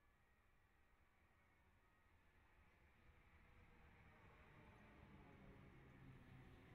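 An electric train approaches and rumbles past, growing louder.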